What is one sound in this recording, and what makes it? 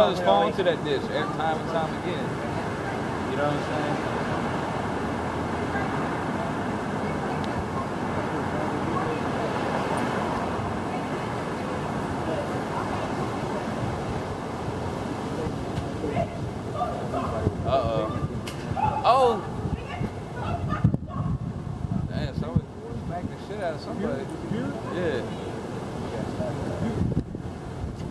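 Traffic rumbles steadily along a busy city street outdoors.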